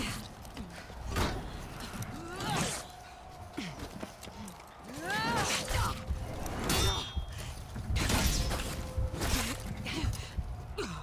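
Swords clash and strike with sharp metallic hits.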